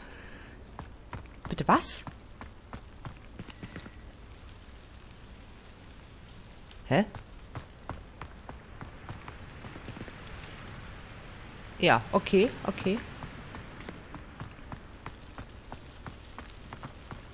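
Footsteps tap quickly on stone paving.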